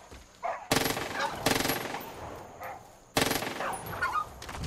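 A gun fires several loud shots in quick bursts.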